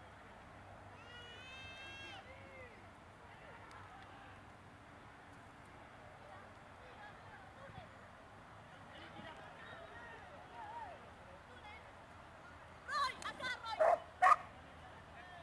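A man calls out loudly to a dog outdoors.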